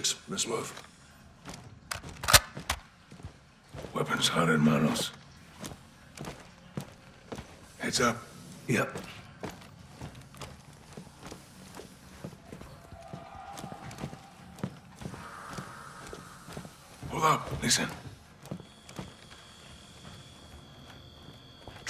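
Footsteps splash on a wet floor.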